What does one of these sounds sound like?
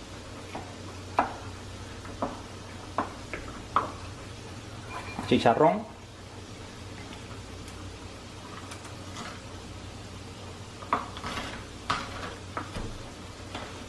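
A wooden pestle pounds and grinds in a wooden mortar with dull knocks.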